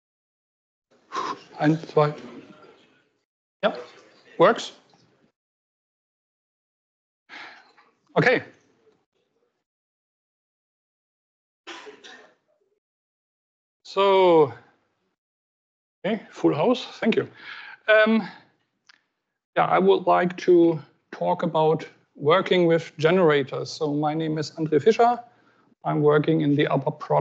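A man speaks into a microphone over a loudspeaker, pausing often.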